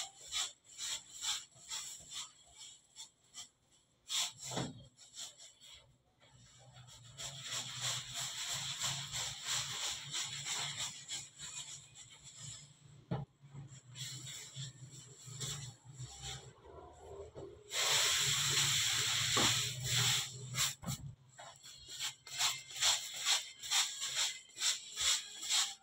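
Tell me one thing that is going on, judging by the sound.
Hands slap and roll soft dough on a table.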